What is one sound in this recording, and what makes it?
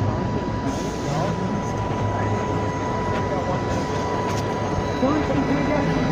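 A bus engine idles with a low rumble.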